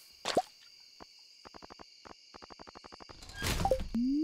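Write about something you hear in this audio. Soft game menu clicks tick in quick succession.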